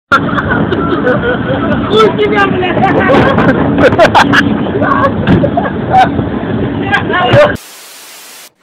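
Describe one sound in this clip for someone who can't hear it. A train roars past at speed with loud rushing noise.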